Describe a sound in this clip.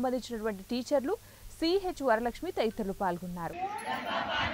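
Women chant together loudly outdoors.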